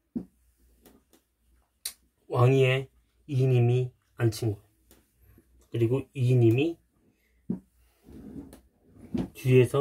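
An eraser rubs against a wall.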